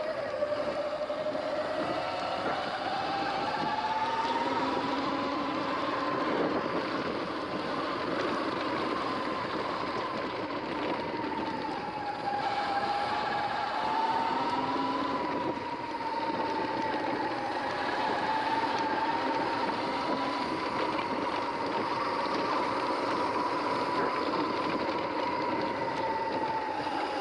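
Bike tyres roll and crunch over a dirt track.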